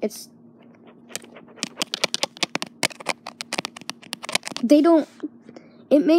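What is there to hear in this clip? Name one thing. A young boy speaks close to the microphone.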